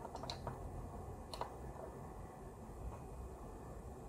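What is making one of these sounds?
A charger plug clicks into a socket.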